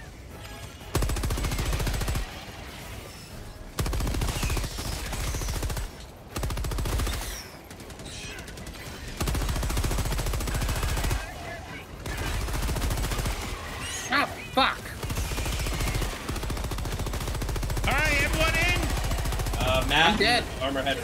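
Rapid machine-gun fire rattles in loud bursts.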